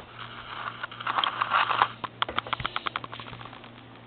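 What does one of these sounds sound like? A dog sniffs and snuffles loudly right up close.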